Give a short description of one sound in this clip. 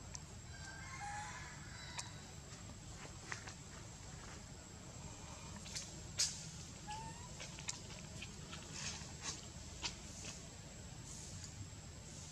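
A monkey chews food with soft clicking sounds.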